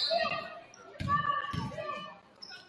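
A basketball thuds as it bounces on the floor.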